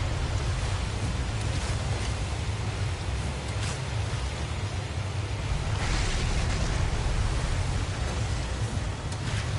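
A large creature thrashes and splashes through the water.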